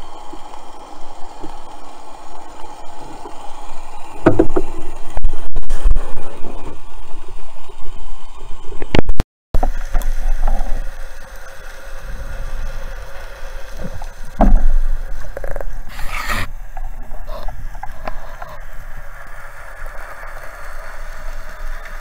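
A muffled underwater rush of water carries on throughout.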